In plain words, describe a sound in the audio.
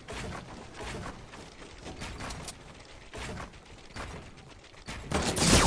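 Footsteps thump quickly up wooden stairs.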